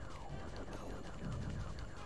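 A small explosion bursts.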